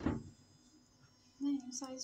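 Breadcrumbs rustle softly under a pressing hand.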